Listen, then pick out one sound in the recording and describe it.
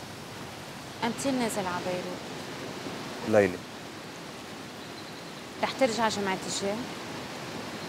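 A young woman answers calmly, close by.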